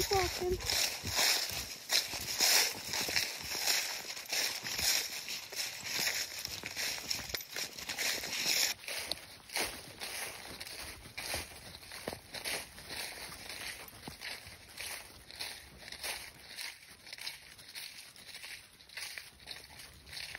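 Dry leaves crunch and rustle under a dog's paws.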